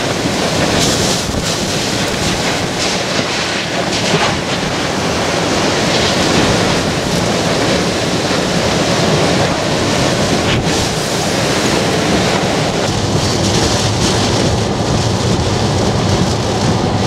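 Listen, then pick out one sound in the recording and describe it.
Sheets of rain lash against a car's windshield.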